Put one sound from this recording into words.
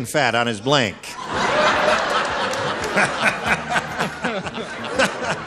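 A middle-aged man laughs heartily close to a microphone.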